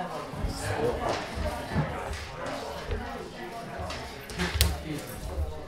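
Game pieces click on a table.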